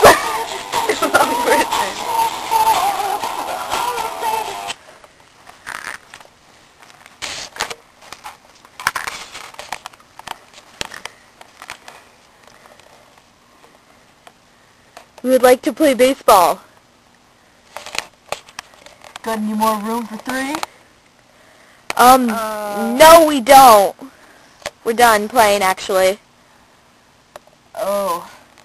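Soft toys rustle as hands move them.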